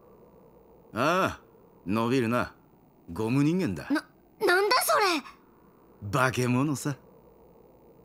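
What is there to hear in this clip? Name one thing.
A young man answers calmly.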